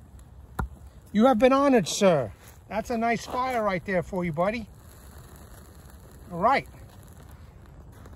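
Dry tinder crackles as flames catch and burn.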